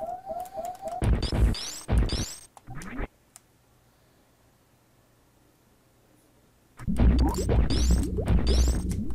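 Electronic blasts and rising sweeps burst out loudly.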